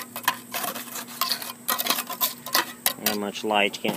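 Loose dirt pours and patters into a hollow concrete block.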